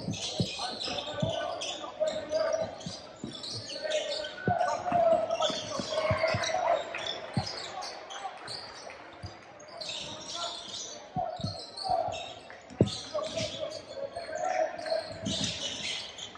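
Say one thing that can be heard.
Young players call out and shout across an echoing gym.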